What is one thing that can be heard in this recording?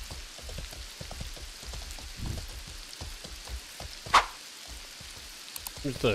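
Horse hooves clop steadily on stone.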